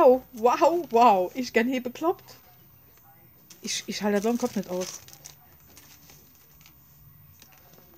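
A plastic packet rustles and crinkles as it is handled.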